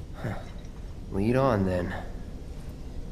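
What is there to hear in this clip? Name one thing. A young man answers calmly in a low voice.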